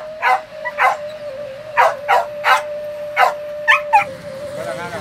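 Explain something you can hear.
Dogs bark sharply several times close by.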